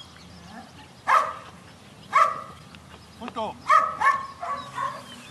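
A man shouts commands to a dog from a distance.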